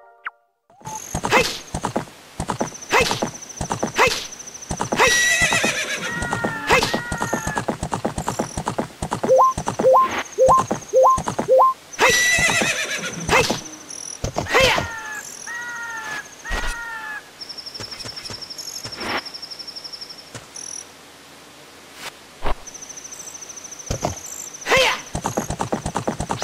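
Horse hooves gallop quickly over dirt.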